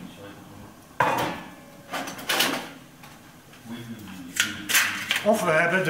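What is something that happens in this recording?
Metal parts clank and scrape as they are handled.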